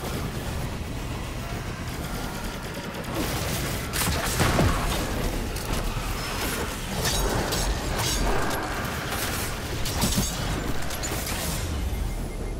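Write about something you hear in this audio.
Blades swing and slash with sharp whooshes.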